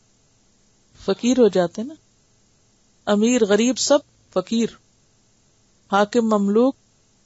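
A woman speaks calmly and clearly into a close microphone, in short phrases with pauses.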